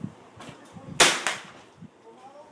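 A rifle fires a loud shot close by.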